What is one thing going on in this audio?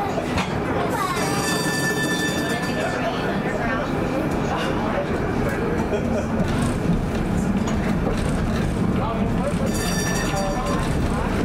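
Tram wheels squeal against the rails.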